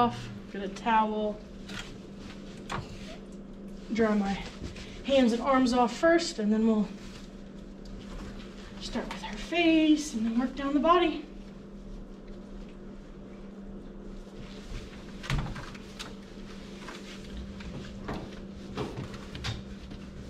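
A towel rubs against a wet dog's coat.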